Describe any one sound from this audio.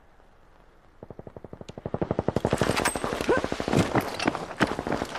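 A machine gun fires in a fast, steady stream of shots.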